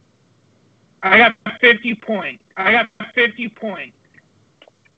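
A man speaks briefly with animation over an online call.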